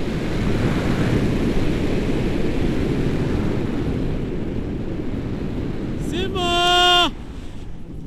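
Wind buffets the microphone during a tandem paraglider flight.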